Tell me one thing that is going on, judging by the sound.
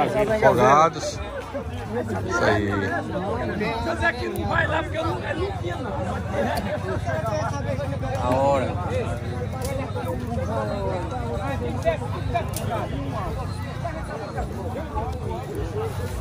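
Several men talk over one another outdoors.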